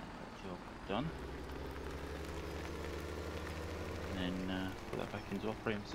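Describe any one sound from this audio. A tractor engine rumbles and revs as the tractor drives off.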